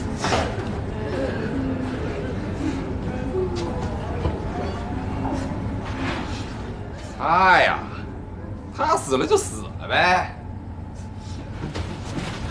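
A crowd of men murmurs in an echoing room.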